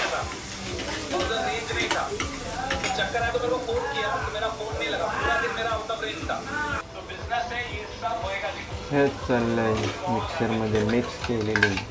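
A metal spatula scrapes and clatters against a pan.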